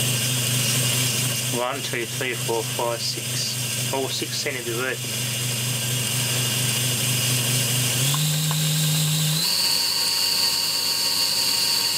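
An electric motor hums steadily, stepping up in pitch twice near the end.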